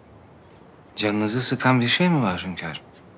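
A man asks a question in a calm, low voice close by.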